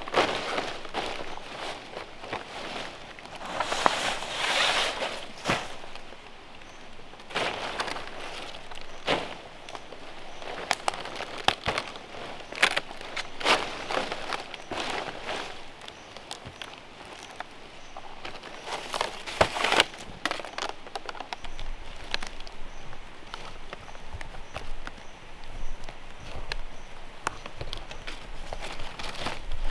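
Dry palm leaves rustle and crackle under a person's hands and feet.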